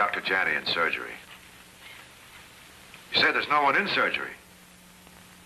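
A man speaks urgently into a telephone.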